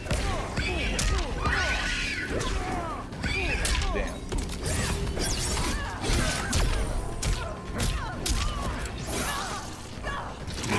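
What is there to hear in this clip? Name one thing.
Fighters grunt and cry out with effort.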